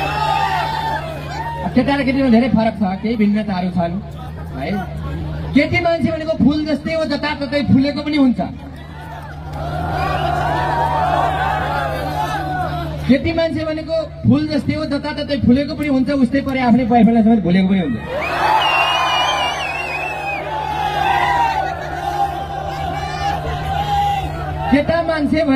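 A young man talks with animation into a microphone, heard through loudspeakers.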